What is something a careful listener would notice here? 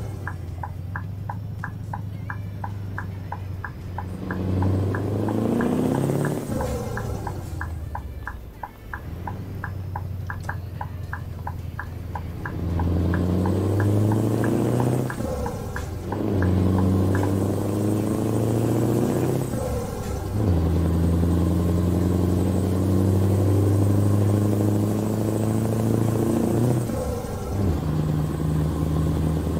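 A truck engine drones steadily, rising and falling in pitch as it shifts gears.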